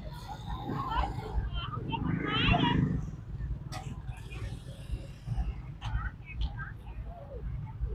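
Men and women talk with animation nearby, outdoors.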